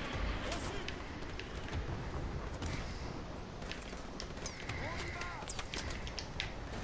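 Gunshots crack repeatedly around a street battle.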